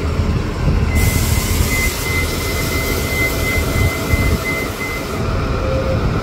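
A bus beeps with a steady high tone.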